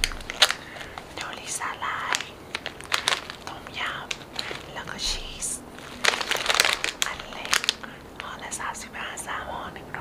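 Plastic snack bags crinkle in a hand.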